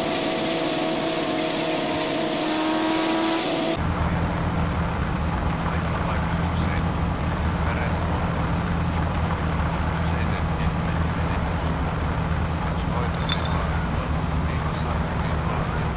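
A car engine drones steadily while driving.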